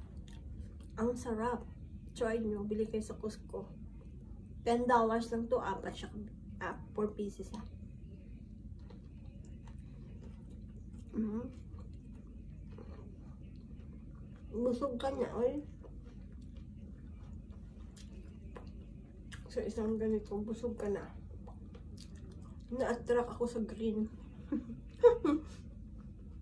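A woman speaks calmly and close by, in short bursts.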